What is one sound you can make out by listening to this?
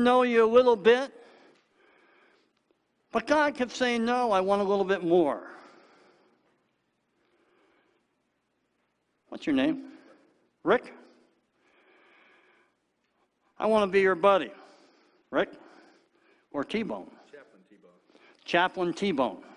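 A middle-aged man speaks with animation through a microphone, echoing slightly in a large room.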